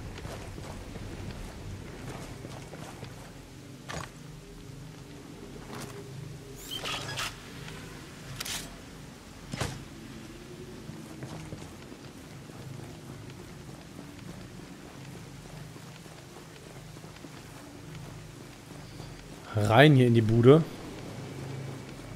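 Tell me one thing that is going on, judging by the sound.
Boots step softly on hard ground.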